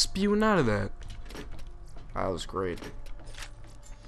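A metal locker door swings open.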